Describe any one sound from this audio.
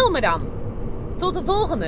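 A woman speaks animatedly close by.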